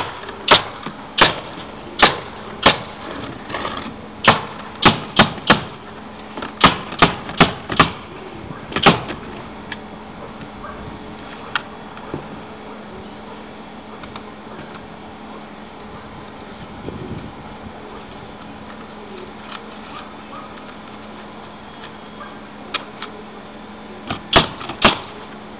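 Nails are driven into a wooden roof with sharp, loud bangs.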